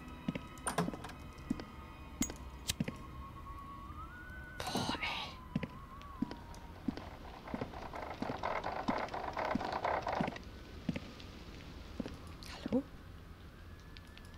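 A young woman talks into a close microphone with animation.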